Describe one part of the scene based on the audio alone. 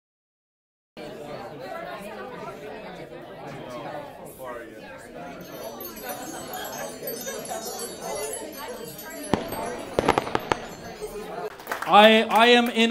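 A crowd of people chatters in a room.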